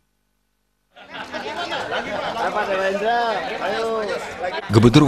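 A group of men talk and cheer together close by.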